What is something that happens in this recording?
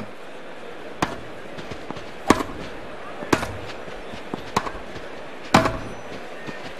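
A tennis ball is struck with sharp pops of a racket.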